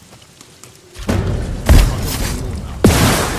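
Swords clash and slash with heavy impacts.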